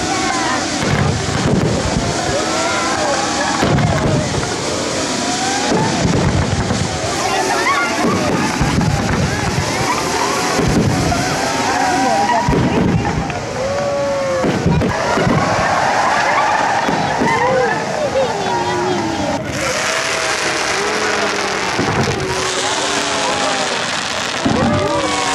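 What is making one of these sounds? Fireworks crackle and fizz steadily.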